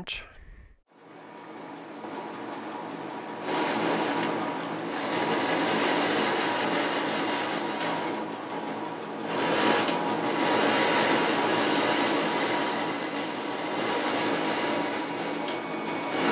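A lathe motor whirs steadily as the chuck spins.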